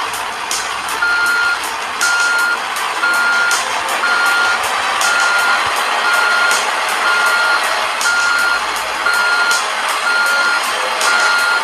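A reversing alarm beeps in a steady rhythm.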